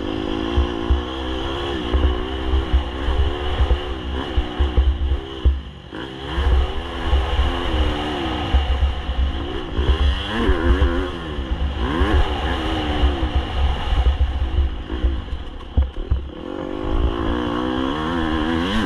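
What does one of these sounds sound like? Knobby tyres crunch and rattle over a gravel trail.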